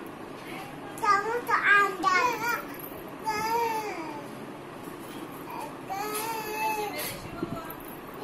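A small child sings out loudly in a high voice nearby.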